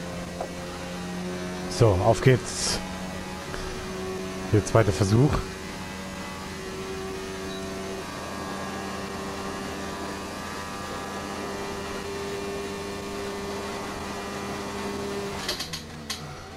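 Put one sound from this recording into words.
A Formula One car engine howls at full throttle.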